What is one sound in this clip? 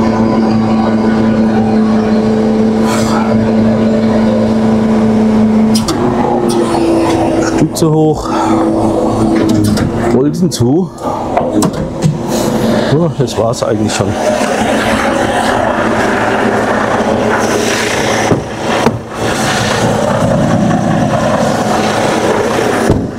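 A heavy machine engine rumbles loudly close by, its pitch shifting as it works.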